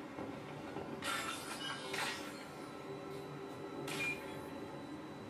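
Electronic beeps and chirps sound from a game's hacking interface.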